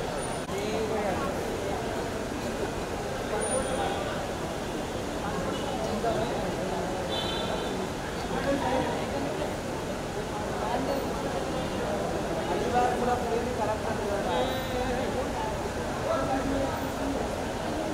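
A large crowd chatters loudly all around, in an echoing hall.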